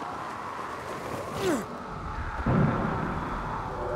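Feet thud on landing.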